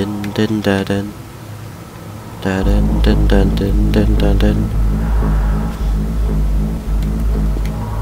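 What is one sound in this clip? A laser beam hums steadily.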